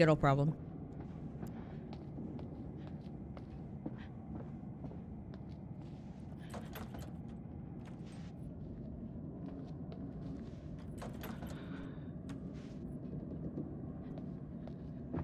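Footsteps tap softly on a floor.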